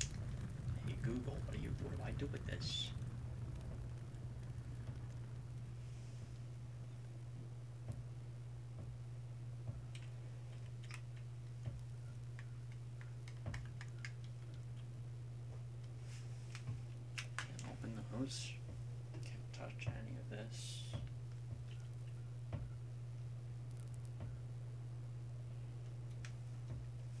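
Footsteps creak slowly across a wooden floor.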